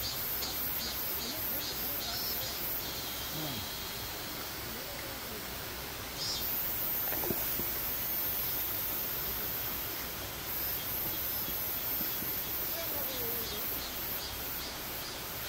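A shallow stream babbles steadily over rocks.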